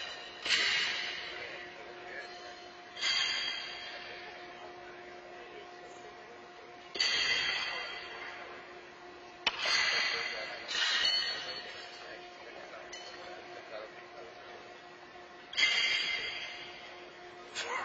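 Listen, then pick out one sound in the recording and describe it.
Horseshoes clang against steel stakes, echoing through a large hall.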